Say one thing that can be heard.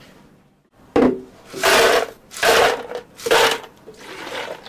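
Ice cubes clatter into a plastic jug.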